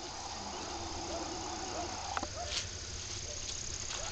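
A small drone whirs in flight overhead.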